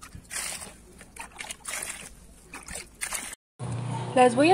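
Water pours out of a scoop onto the ground.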